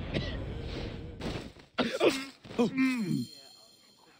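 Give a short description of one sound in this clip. Blades strike hard during a close fight.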